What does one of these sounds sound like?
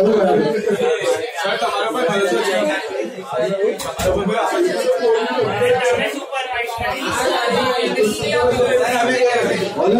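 A young man speaks steadily and explains, close by.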